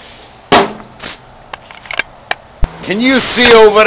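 A metal grill lid clanks open.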